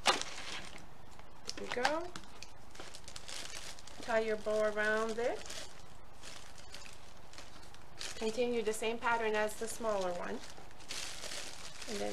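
Cellophane and paper crinkle and rustle close by.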